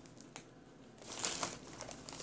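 A chip bag crinkles.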